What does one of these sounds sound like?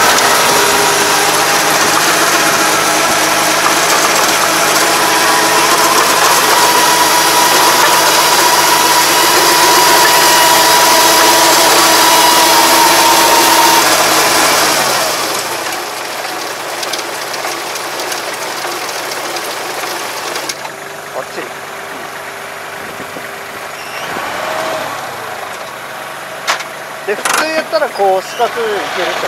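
A tractor engine runs loudly close by, then drops to a quieter idle.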